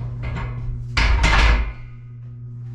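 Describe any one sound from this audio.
A barbell clanks down onto metal rack hooks.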